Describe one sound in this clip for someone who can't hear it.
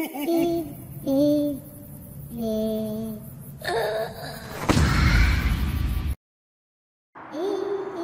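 A squeaky cartoon voice whimpers and wails in long, sobbing cries.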